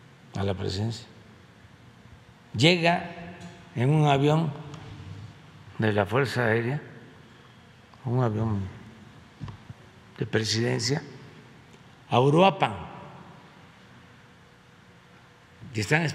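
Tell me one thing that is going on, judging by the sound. An elderly man speaks slowly into a microphone, pausing between phrases.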